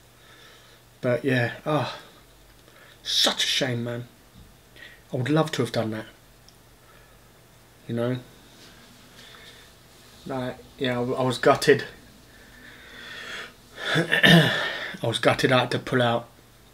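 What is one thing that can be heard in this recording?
A middle-aged man talks calmly in short bursts close to the microphone.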